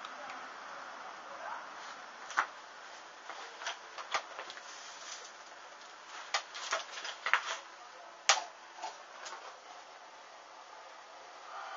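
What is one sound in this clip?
A small flame crackles and pops as fabric burns.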